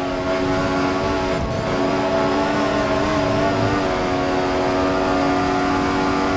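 Tyres rumble over the track.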